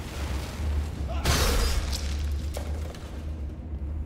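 A burst of fire whooshes and roars.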